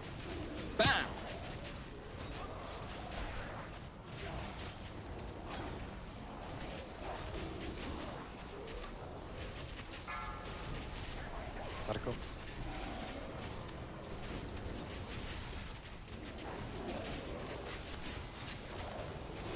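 Spell and combat sound effects clash and burst throughout.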